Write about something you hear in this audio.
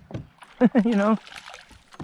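A hooked fish splashes at the surface of a river.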